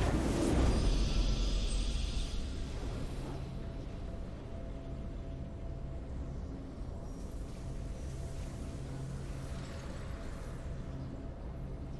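A triumphant game fanfare plays.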